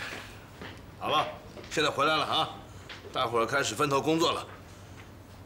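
A middle-aged man speaks calmly and clearly close by.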